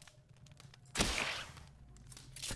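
An arrow whooshes as a bow is shot.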